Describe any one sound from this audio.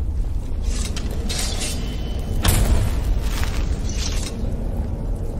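A magic spell crackles and bursts with a bright whoosh.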